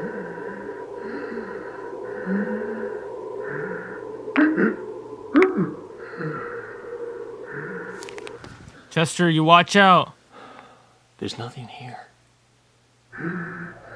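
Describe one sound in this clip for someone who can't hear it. A young man speaks in a low, hushed voice close to a microphone.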